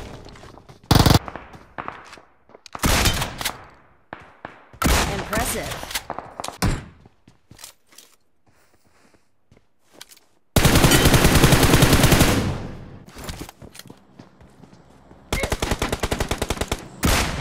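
Footsteps run quickly over hard ground and grass.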